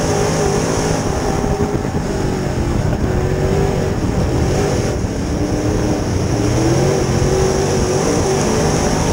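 A race car engine roars loudly and revs up and down close by.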